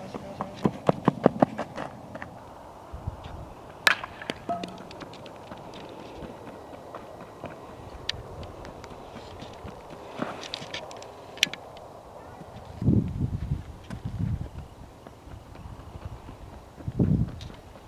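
Cleats crunch on dirt as a player runs.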